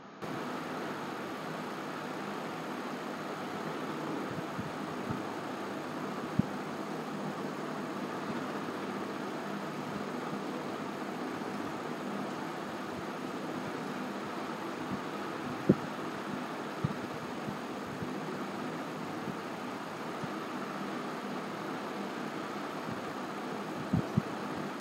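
A young woman speaks steadily and calmly into a microphone.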